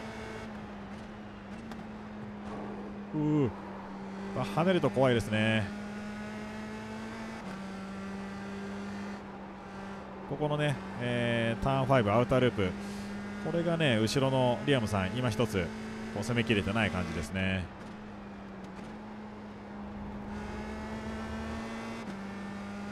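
A racing car engine drones at a steady high pitch.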